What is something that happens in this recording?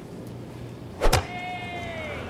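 A golf iron strikes a ball with a sharp crack.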